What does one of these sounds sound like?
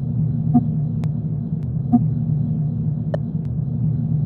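Short electronic clicks sound as menu buttons are pressed.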